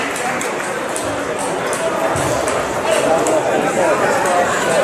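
Men talk in the background of a large hall.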